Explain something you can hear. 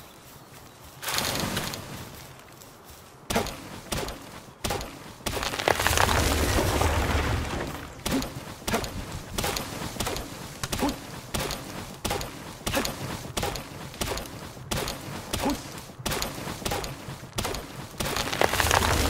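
An axe chops into a tree trunk with repeated sharp thuds.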